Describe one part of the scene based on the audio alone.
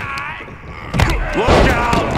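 A body slams hard onto a wrestling ring mat with a heavy thud.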